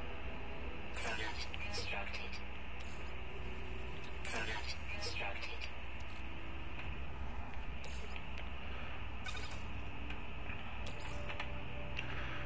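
Short electronic interface chimes and whooshes sound as menu items are selected.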